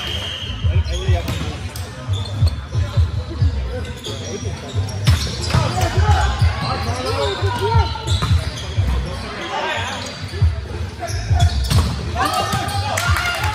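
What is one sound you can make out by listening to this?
Players shout and call out to each other across a large echoing hall.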